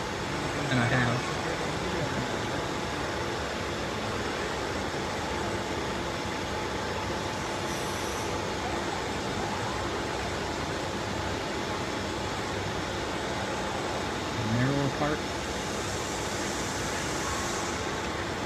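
Robotic machinery whirs and hums steadily in a large noisy hall.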